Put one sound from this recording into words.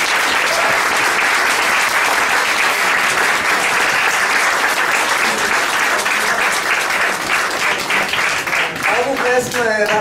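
An audience applauds in a room.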